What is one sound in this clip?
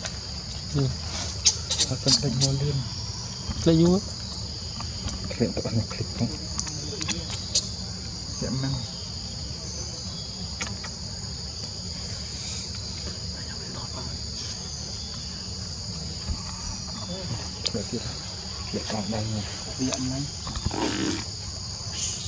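A baby macaque cries with high, wavering calls.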